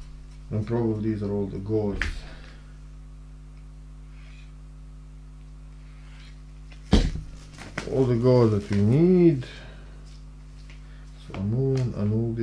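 Stiff cards tap and rustle as they are handled.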